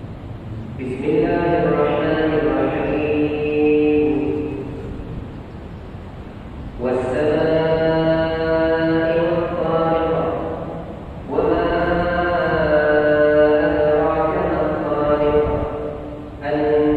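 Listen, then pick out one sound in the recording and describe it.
A man chants in long, drawn-out phrases through a loudspeaker in a large echoing hall.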